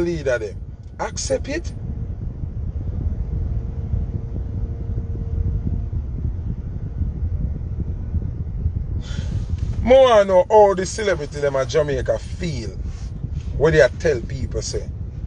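A low engine rumble hums steadily inside a car.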